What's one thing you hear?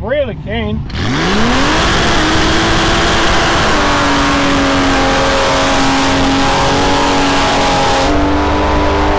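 Tyres screech and squeal on the road.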